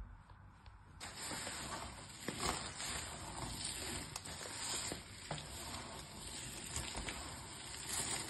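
Small plastic shards rustle and clatter as hands crush and stir them.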